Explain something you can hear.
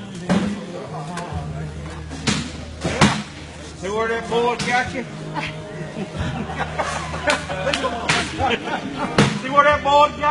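Beanbags thump onto wooden boards.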